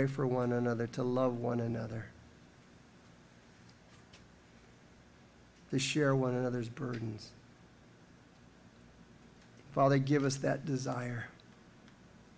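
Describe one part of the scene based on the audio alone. An elderly man speaks slowly and calmly into a microphone, pausing between phrases.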